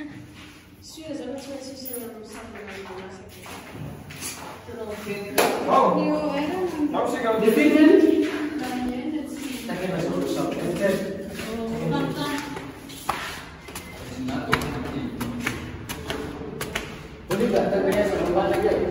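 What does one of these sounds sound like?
Young people talk and call out nearby.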